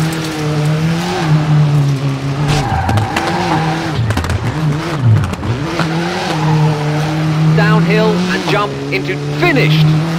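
A rally car engine roars, revving up and down through gear changes.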